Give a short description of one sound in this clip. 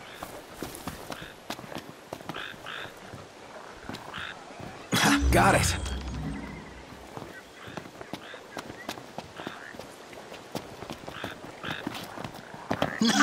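Footsteps crunch on grass and rock.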